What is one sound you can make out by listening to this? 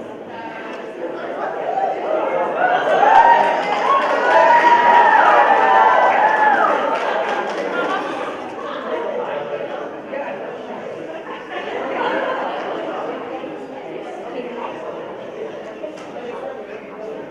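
A crowd of teenagers chatters in a large echoing hall.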